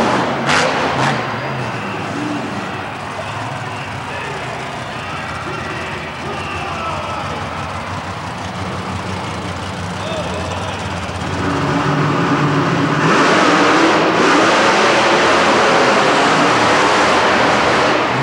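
Monster truck engines roar and rev in a large echoing arena.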